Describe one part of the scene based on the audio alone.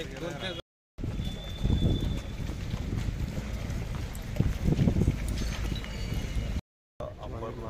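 Footsteps of a crowd shuffle outdoors.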